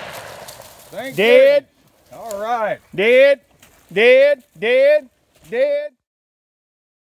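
A man calls out loudly outdoors.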